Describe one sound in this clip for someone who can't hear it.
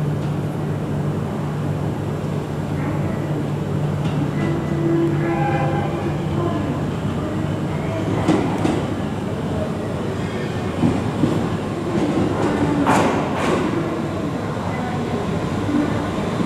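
A diesel train rumbles steadily as it slowly rolls in.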